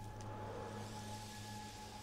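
A firework launches with a whoosh.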